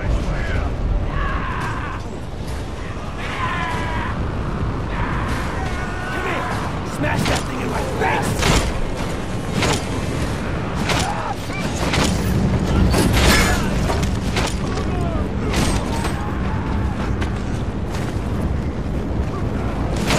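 Men grunt and shout while fighting.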